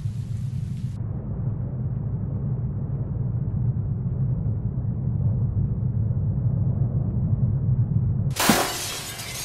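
Rain falls steadily outdoors at night.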